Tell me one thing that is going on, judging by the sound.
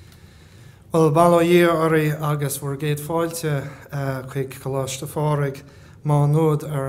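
A younger man speaks steadily into a microphone in a room.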